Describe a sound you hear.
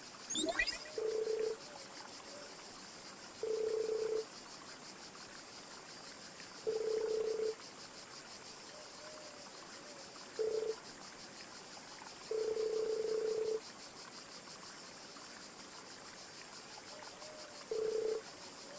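A short electronic beep sounds several times.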